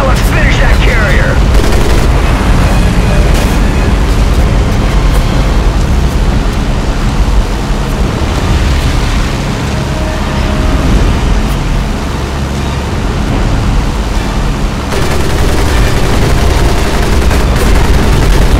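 A propeller plane's engine drones steadily up close.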